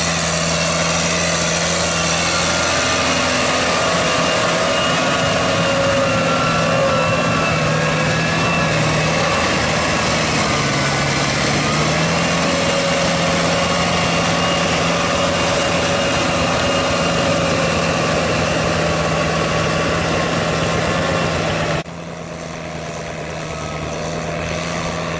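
A tractor engine hums steadily and loudly nearby.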